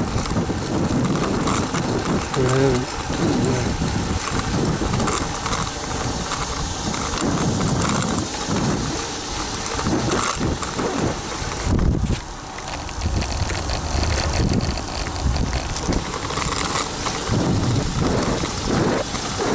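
Wind buffets the microphone of a fast-moving bicycle.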